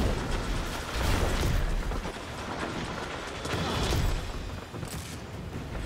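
Footsteps run over hard ground in a video game.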